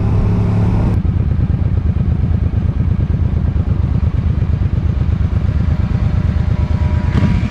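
A motorcycle engine idles with a low throb.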